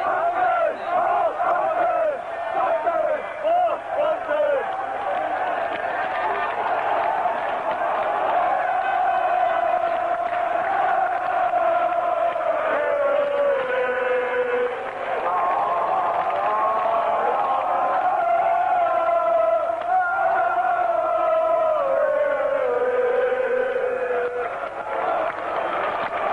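A large stadium crowd chants and sings loudly in unison, close by.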